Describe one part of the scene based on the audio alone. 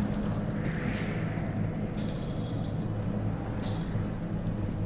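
A chain-link gate rattles and creaks as it swings open.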